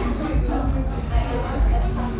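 People chatter quietly in the background.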